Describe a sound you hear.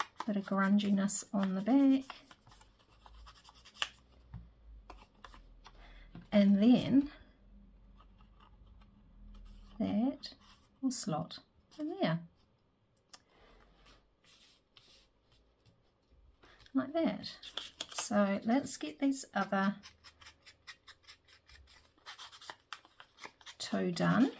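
A foam blending tool rubs against paper.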